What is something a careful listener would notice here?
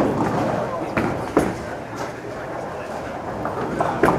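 A bowling ball thuds onto a wooden lane and rumbles away.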